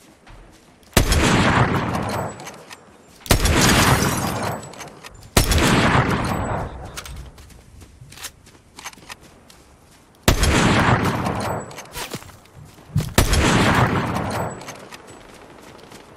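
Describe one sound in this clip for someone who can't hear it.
Loud gunshots crack and echo away.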